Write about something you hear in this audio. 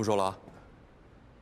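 A young man speaks briefly into a phone in a calm voice.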